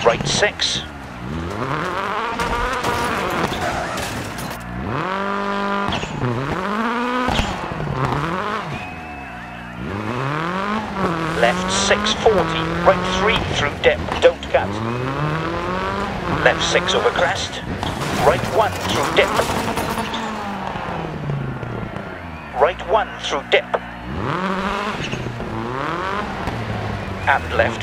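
A rally car engine revs hard and shifts through the gears.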